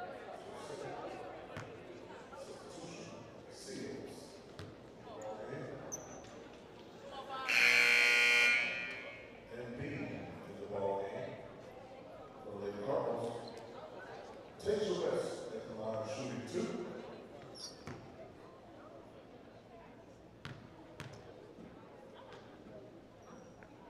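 Spectators and players chatter and call out in an echoing gym.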